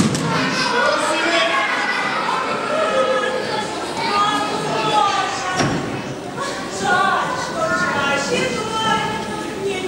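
Children speak their lines with animation in a large echoing hall.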